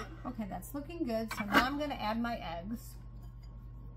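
A plastic pouring shield clicks against a metal mixing bowl.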